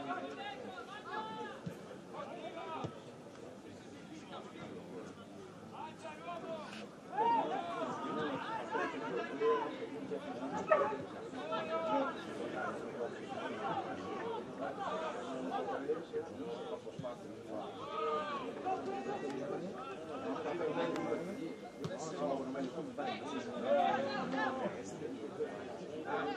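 Football players shout to each other across an open pitch outdoors.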